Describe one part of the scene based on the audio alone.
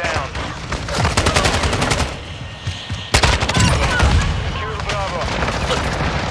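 Rapid gunfire rattles in sharp bursts.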